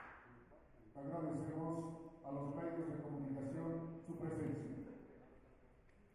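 A man speaks over a loudspeaker in a large hall.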